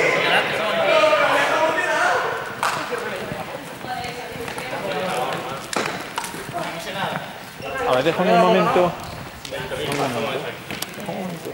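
Young men and women talk over each other in a large echoing hall.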